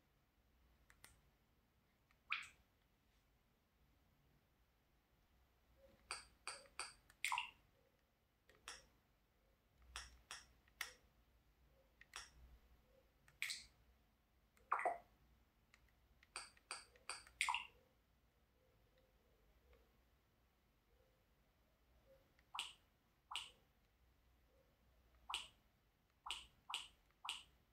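Short electronic menu blips and clicks sound from a television as selections change.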